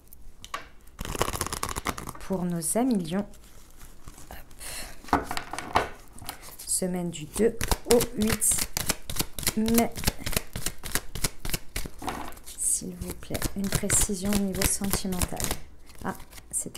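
Playing cards riffle and slap together as they are shuffled close by.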